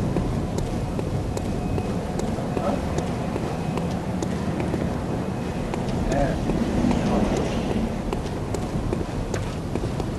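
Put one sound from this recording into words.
Footsteps walk steadily over cobblestones.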